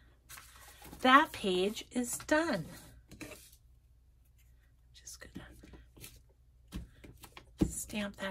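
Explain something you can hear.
Paper rustles as it is handled and smoothed.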